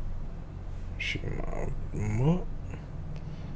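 A man speaks briefly and quietly.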